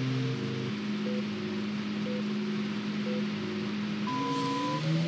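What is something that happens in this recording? Countdown beeps sound three times, followed by a longer, higher beep.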